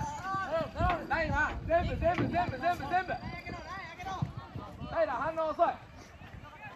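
Football players shout to each other outdoors on an open field.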